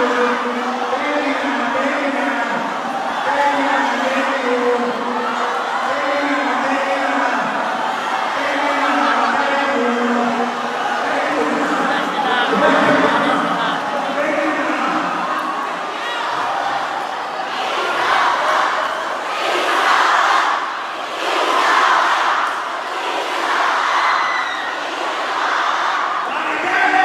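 A large crowd sings along and cheers.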